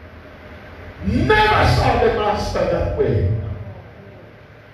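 An elderly man shouts with passion through a microphone.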